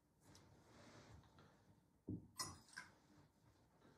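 Metal vessels clink softly on a table.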